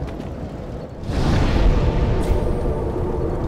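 A fire flares up with a loud rushing whoosh.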